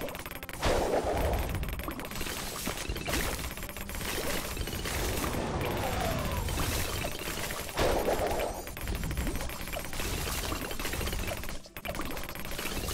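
Rapid popping and blasting game effects play throughout.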